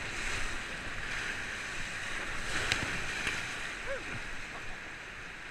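Water splashes hard against a raft.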